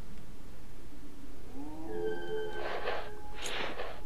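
A rifle is lowered with a short rattle.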